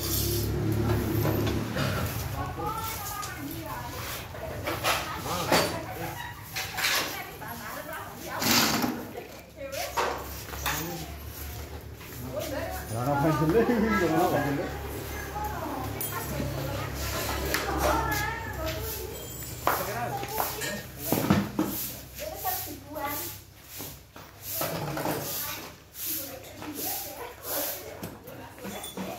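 Metal parts clank and knock against each other.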